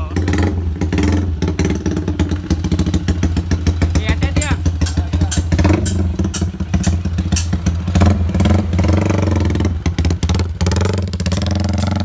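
A motorcycle engine idles loudly and revs in sharp bursts close by.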